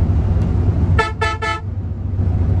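A bus horn honks in a few quick blasts.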